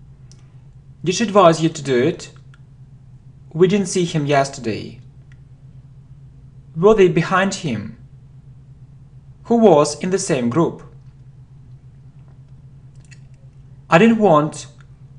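A young man reads short phrases aloud into a close microphone, pausing between each.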